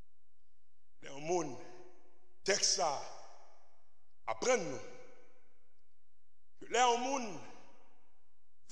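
A man preaches through a microphone in short, emphatic phrases with pauses between them.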